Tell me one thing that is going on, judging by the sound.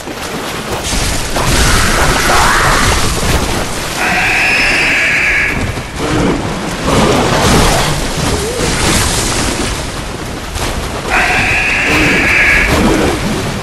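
Blades clash and slash against creatures in quick strikes.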